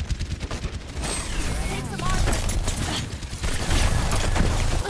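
Loud explosions and impacts boom in a game battle.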